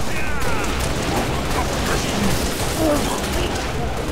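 Energy weapons zap and hiss.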